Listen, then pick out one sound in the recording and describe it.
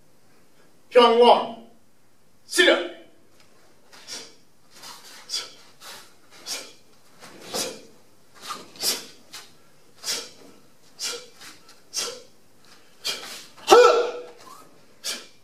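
A middle-aged man shouts sharply.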